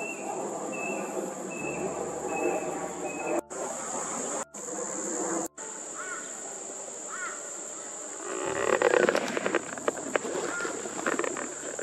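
A cockatoo calls from the treetops with short, repeated cries.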